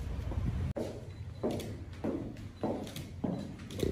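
Shoes click on a hard floor.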